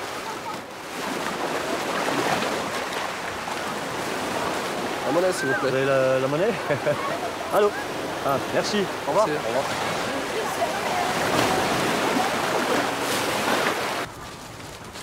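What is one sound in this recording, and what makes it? Waves break and water splashes as swimmers play.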